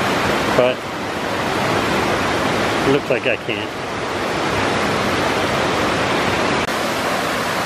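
A stream rushes and splashes over rocks.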